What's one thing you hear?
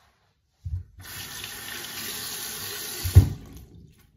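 Water runs from a tap into a sink.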